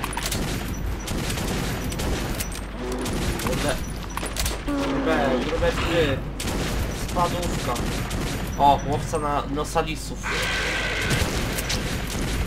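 Monsters snarl and shriek close by.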